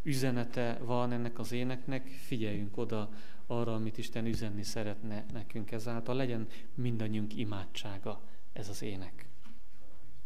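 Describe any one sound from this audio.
A man speaks with animation into a microphone in an echoing hall.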